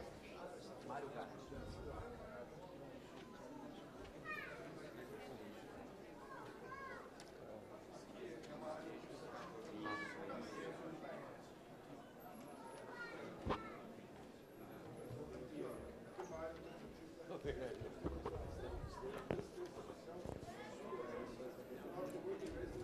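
Several men talk quietly among themselves, with a murmur of voices throughout.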